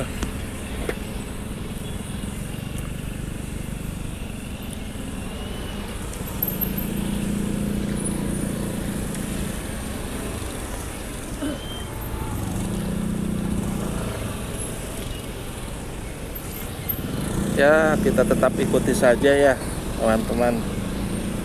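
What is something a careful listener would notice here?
Motorcycle engines idle and rumble in slow traffic.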